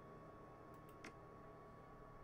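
A short click sounds as an item is added to a menu.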